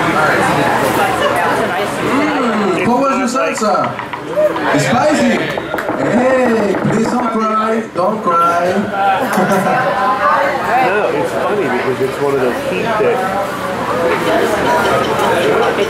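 A man speaks with animation through a microphone and loudspeaker.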